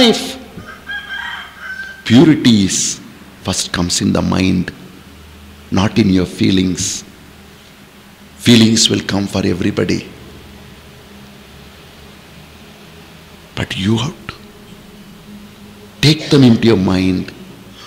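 A man preaches forcefully into a microphone, in bursts with pauses.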